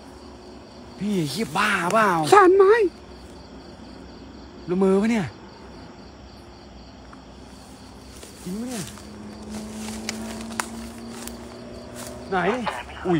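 A young man speaks close by, with animation.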